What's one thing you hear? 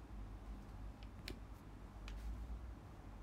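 A hand rubs and knocks against a phone's microphone close up.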